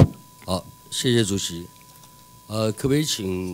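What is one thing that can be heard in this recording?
A man speaks calmly through a microphone.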